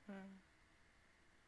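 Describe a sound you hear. A young woman makes a short humming sound close to a microphone.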